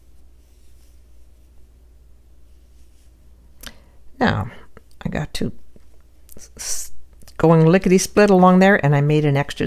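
A crochet hook softly draws yarn through stitches.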